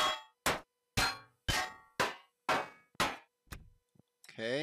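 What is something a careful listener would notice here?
Sharp electronic zaps from a game tool sound in a quick, even series, then stop.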